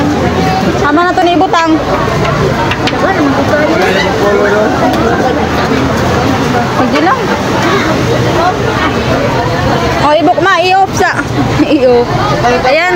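A crowd of women chatters loudly close by.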